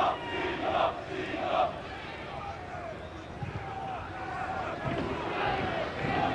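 A large crowd murmurs and shouts in an open stadium.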